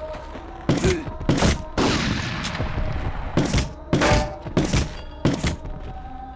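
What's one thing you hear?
Pistol shots ring out in quick, sharp bursts.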